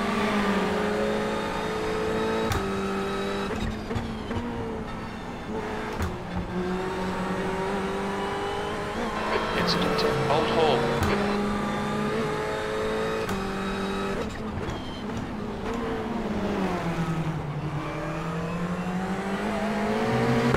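A race car engine roars and revs up and down through gear changes.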